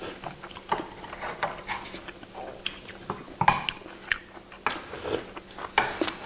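A woman chews and slurps food up close.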